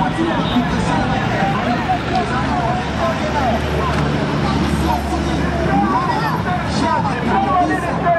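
Minibus engines hum as vehicles drive past.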